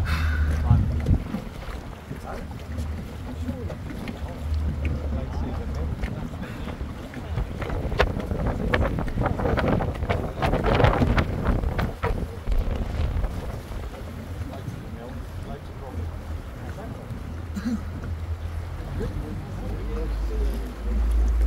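Water splashes and laps against a moving boat.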